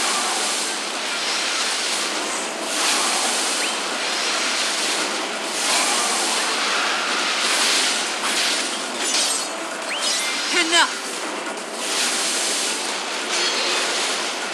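Explosions boom and roar in bursts.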